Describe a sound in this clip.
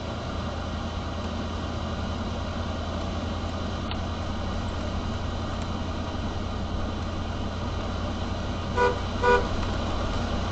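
Tyres hiss over a wet road.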